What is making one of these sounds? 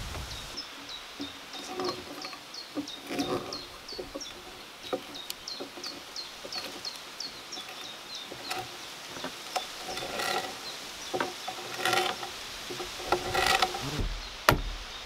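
A hand auger creaks and grinds as it bores into wood.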